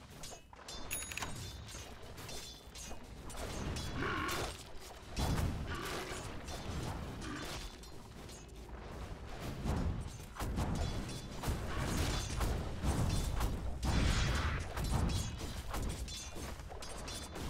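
Fantasy battle sound effects clash, whoosh and crackle.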